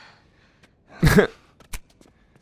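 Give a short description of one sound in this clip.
A shoe scrapes on a concrete floor.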